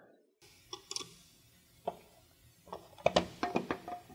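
A screwdriver scrapes and clicks against a plastic plate.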